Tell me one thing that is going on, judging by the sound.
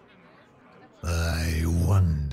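A game chimes with a loud, bright sound effect.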